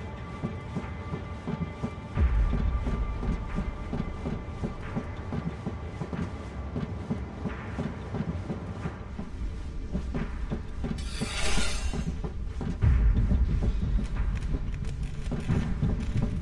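Footsteps clang quickly on a metal grating.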